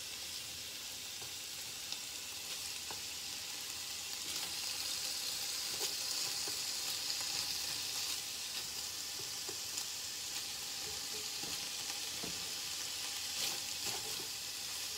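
Meat sizzles in a hot frying pan.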